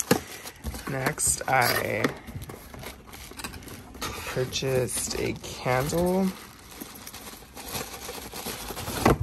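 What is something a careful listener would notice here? Cardboard boxes scrape and thump as they are moved about.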